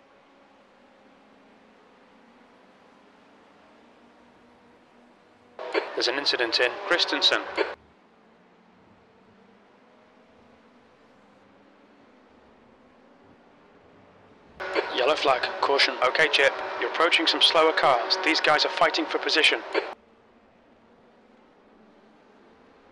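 A racing car engine drones steadily in the distance.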